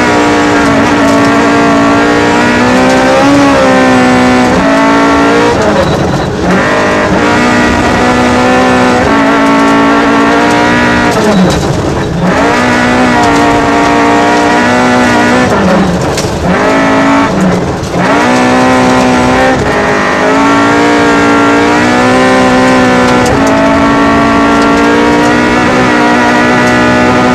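Gravel rattles and sprays against the underside of a car.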